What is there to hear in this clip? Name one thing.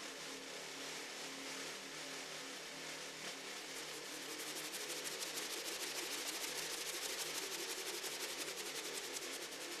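A snare drum is played with brushes in fast, rustling strokes that grow quicker and louder.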